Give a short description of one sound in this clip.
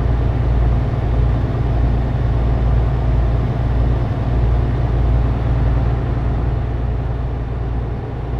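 A truck engine drones steadily at speed.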